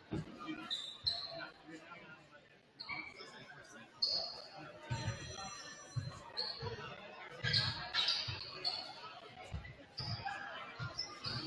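Sneakers squeak sharply on a hardwood floor.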